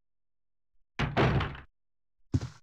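A door shuts with a heavy thud.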